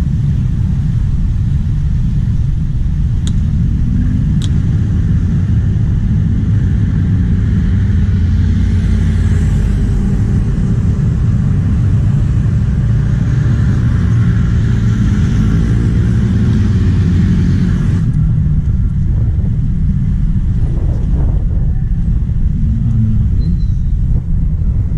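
Wind buffets and rumbles loudly throughout, outdoors.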